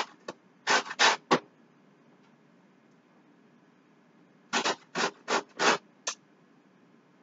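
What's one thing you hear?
Food scrapes against a metal grater in short, rasping strokes.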